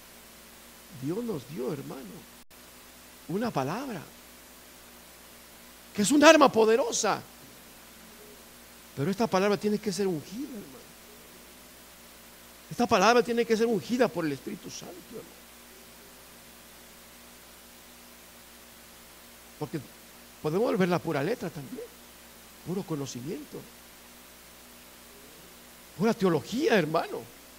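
A middle-aged man speaks through a microphone in short bursts with long pauses.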